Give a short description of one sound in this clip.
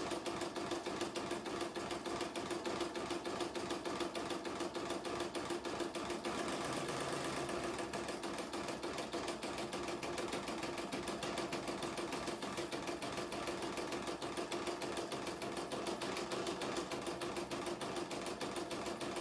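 An embroidery machine stitches with a fast, steady, rhythmic whirring hum.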